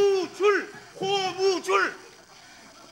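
An older man shouts out excitedly, loud and close.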